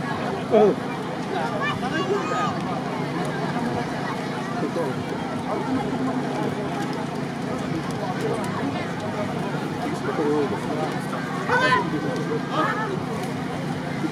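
Music plays loudly over outdoor loudspeakers.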